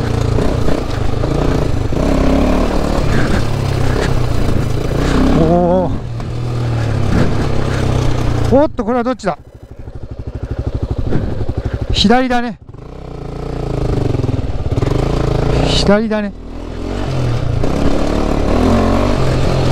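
A motorcycle engine rumbles and revs.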